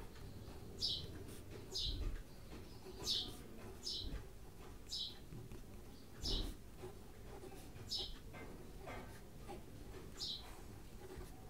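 A pen scratches across paper in short strokes.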